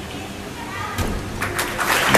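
A gymnast lands on a mat with a thud.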